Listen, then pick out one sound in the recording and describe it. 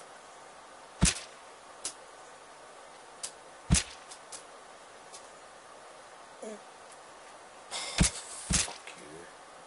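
Sharp thuds and slicing hits ring out from a game.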